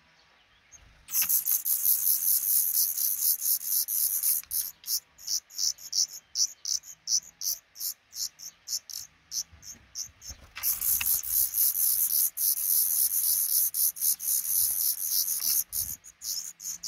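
An adult bird's wings flutter close by.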